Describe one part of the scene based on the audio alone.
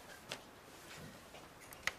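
Footsteps walk across a floor.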